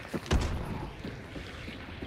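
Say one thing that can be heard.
A fire crackles and roars nearby.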